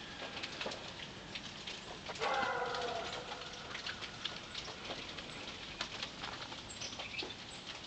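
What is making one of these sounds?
A small bird pecks and cracks seeds at a feeder with sharp little clicks.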